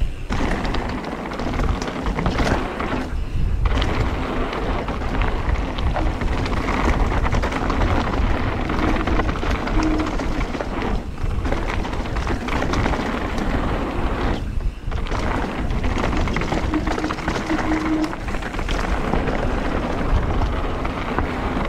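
A bicycle's frame and chain rattle over bumps.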